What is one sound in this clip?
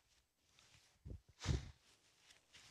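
An elderly man blows his nose.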